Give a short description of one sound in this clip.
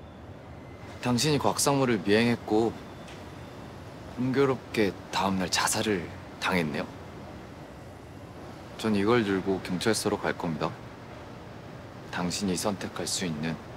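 A young man speaks close by in a low, tense voice.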